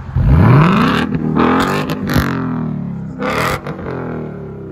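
Exhaust pops and crackles after the revs.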